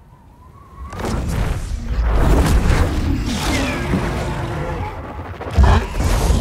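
A large winged creature beats its wings loudly.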